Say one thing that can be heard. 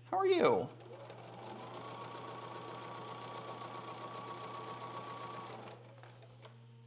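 A sewing machine runs with a steady whirring hum.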